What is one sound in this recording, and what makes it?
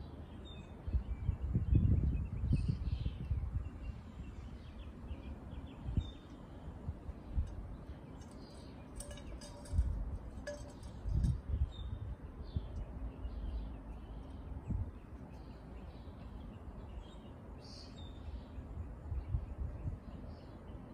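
Wind gusts outdoors and rustles tree leaves.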